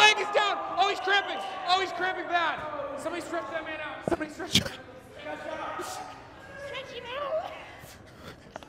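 Young men laugh and shout loudly nearby.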